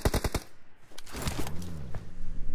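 A car engine revs as a vehicle drives off.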